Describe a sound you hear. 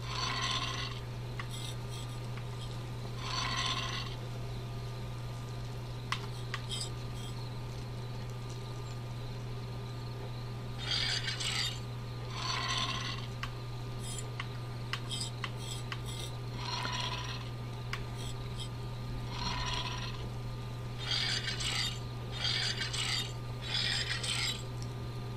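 Heavy stone rings grind with a rushing whoosh in short bursts as they turn.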